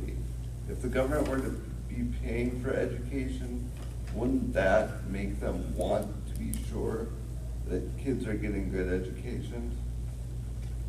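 A young man speaks calmly in an echoing room.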